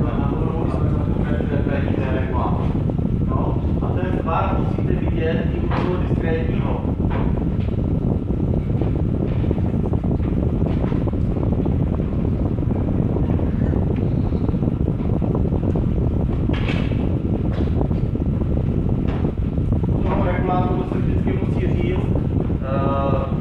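A man speaks calmly in a lecture, heard from a distance.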